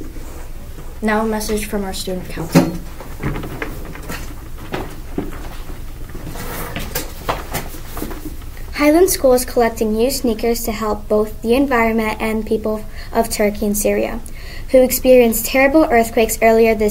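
A young girl reads aloud clearly, close by.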